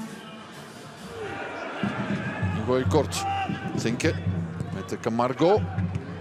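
A sparse crowd of fans shouts and calls out across an open stadium.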